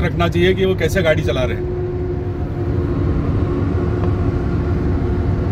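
A car's tyres rumble steadily on a highway.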